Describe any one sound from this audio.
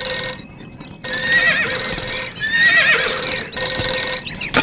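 A goat bleats.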